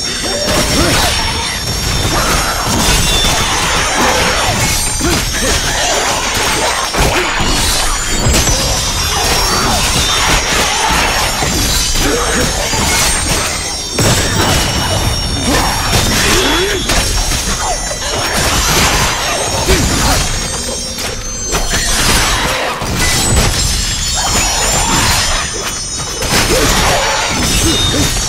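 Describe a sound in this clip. Blades swish and clash in a fast fight.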